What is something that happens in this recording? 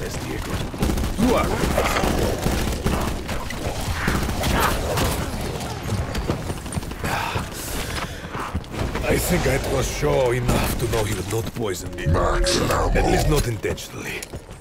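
Zombies growl and snarl close by.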